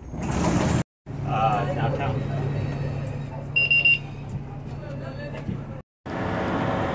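A bus engine hums steadily from inside the bus.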